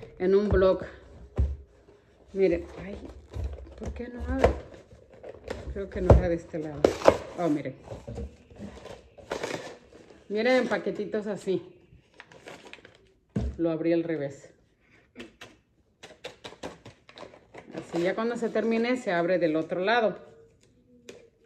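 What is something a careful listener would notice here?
Paper and cardboard packaging rustle and crinkle.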